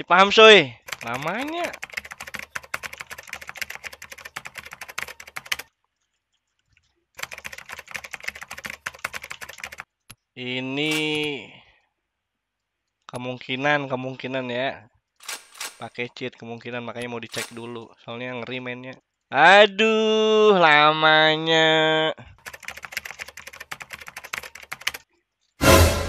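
Keys clatter quickly on a keyboard.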